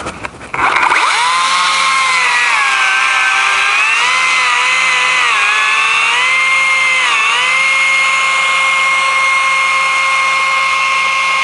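A chainsaw engine runs loudly and steadily, its pitch dipping as it cuts into a tree trunk.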